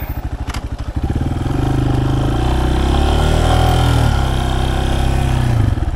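A motorcycle engine revs up and pulls away loudly.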